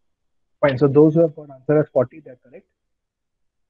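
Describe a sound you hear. A young man speaks calmly into a microphone, as if over an online call.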